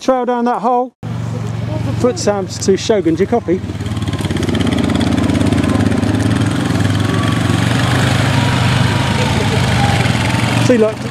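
A quad bike engine rumbles steadily close by.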